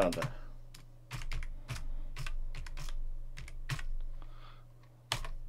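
Keyboard keys click in quick bursts of typing.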